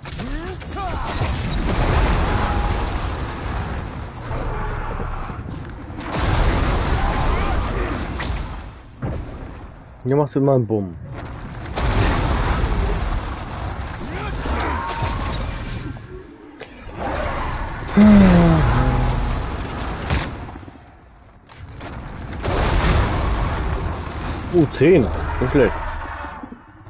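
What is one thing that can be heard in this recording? Fire roars in loud bursts from a dragon's breath.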